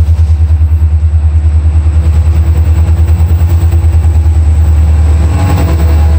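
Steel wheels clatter rhythmically on the rails.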